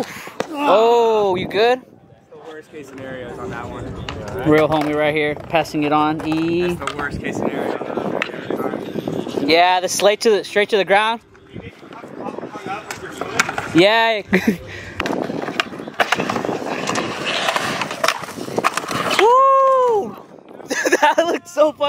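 A skateboard clatters against concrete as a rider falls.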